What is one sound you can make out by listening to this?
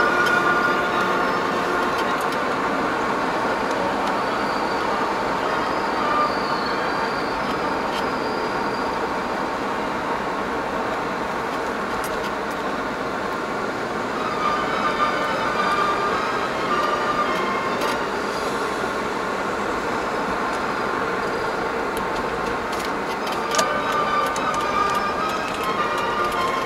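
A car drives on a paved road, heard from inside.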